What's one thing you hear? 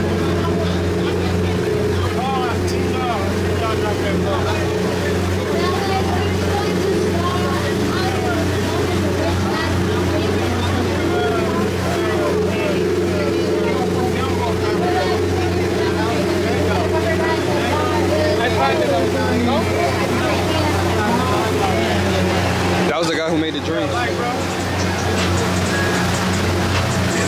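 Men and women chatter nearby on a boat.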